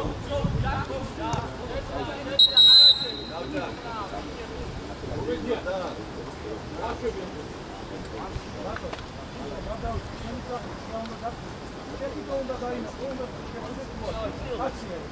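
Men call out to each other across an open outdoor pitch.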